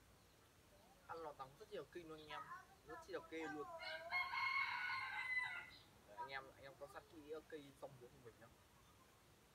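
A young man speaks or raps close by, in a lively voice.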